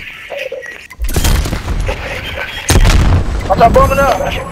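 Gunfire rattles in quick bursts close by.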